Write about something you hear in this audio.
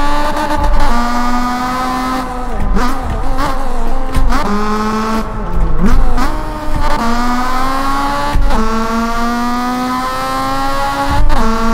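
A car engine revs hard, climbing in pitch and dropping with each gear change.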